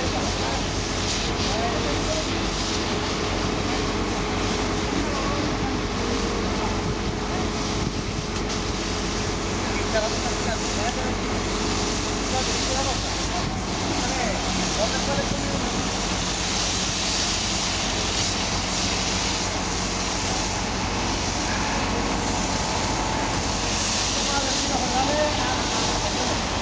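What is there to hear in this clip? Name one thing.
Water sprays hard from a hose onto wet pavement with a steady hiss.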